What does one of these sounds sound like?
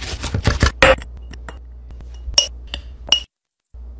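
A spoon clinks against a glass jar.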